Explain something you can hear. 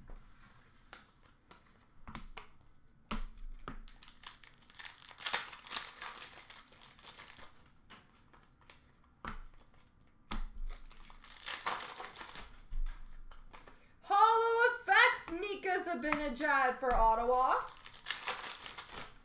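Plastic card cases click against each other.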